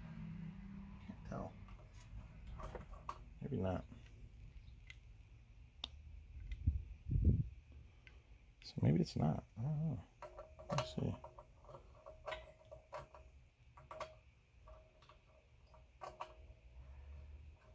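Metal fittings click and clink as they are handled.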